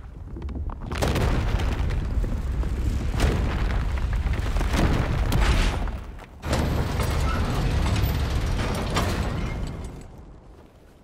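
Heavy stone grinds and rumbles loudly.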